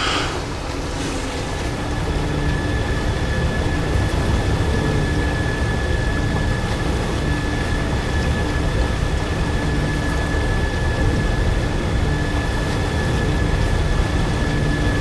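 A swirling vortex roars with a deep, steady rumble.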